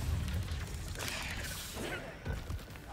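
A magic shield hums and crackles.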